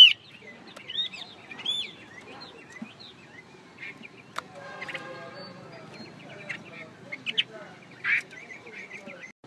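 A songbird sings a varied series of chirps and whistles close by.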